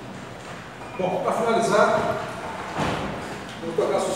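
A man speaks aloud to an audience.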